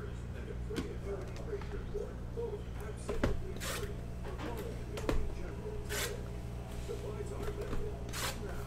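Cardboard and plastic packs rustle and crinkle in hands.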